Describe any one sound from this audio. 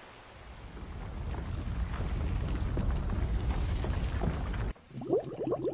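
Waves of water rush and surge.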